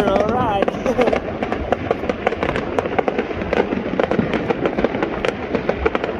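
Fireworks boom with deep thuds.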